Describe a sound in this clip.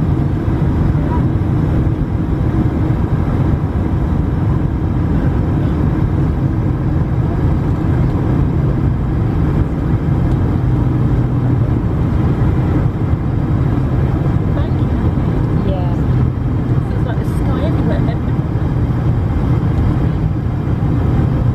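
Jet engines roar with a steady, deep drone inside an airliner cabin.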